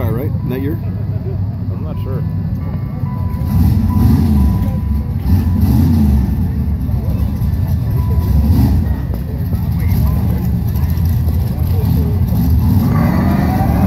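A supercharged V8 pickup idles at the starting line.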